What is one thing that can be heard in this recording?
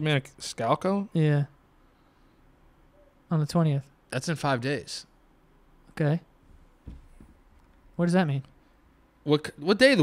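A young man speaks calmly and close to a microphone, in short bursts.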